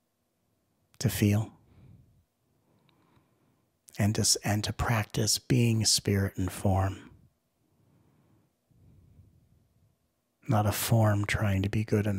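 A man speaks calmly and clearly into a close microphone, pausing between phrases.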